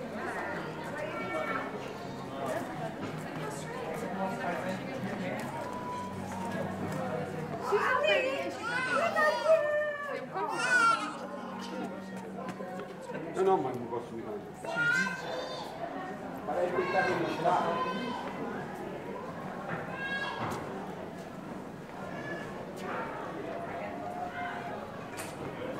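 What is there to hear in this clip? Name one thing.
Men and women chatter and talk nearby, outdoors.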